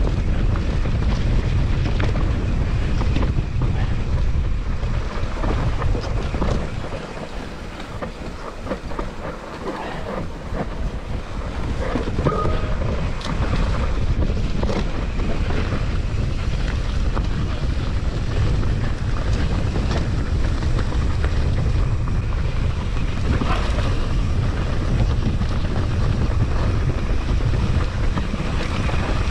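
Bike tyres rumble and rattle over a rough dirt trail.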